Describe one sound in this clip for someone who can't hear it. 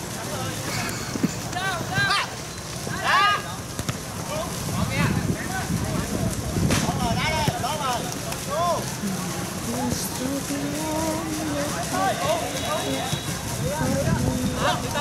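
A football thuds off a player's foot.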